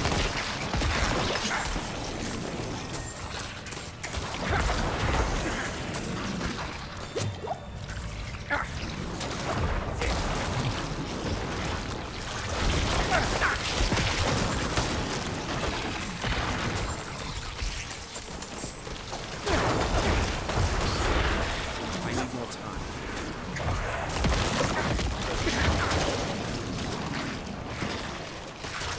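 Magic blasts crash and boom in a frantic fight.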